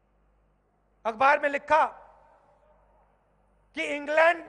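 A man speaks forcefully into a microphone, his voice carried over loudspeakers outdoors.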